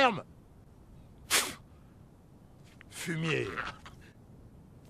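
An elderly man speaks close by.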